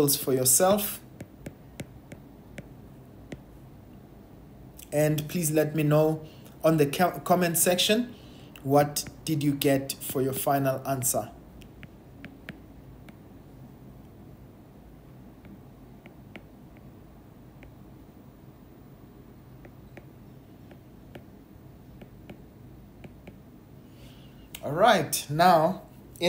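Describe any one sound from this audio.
A stylus taps and scratches lightly on a glass tablet.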